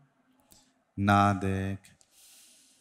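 A man draws a quick breath in close to a microphone.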